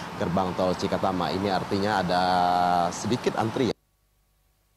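A man speaks steadily into a microphone, reporting.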